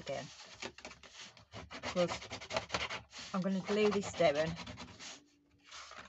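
A plastic tool scrapes along a fold in card.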